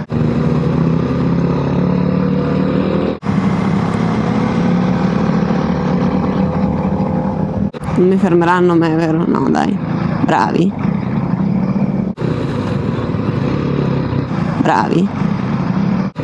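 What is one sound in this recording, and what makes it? A motorcycle engine drones steadily up close.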